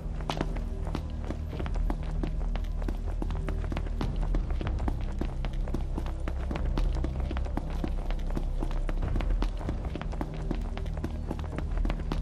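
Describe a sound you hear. Running footsteps slap on asphalt.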